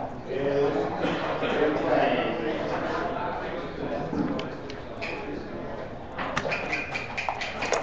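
Game pieces click against a wooden board.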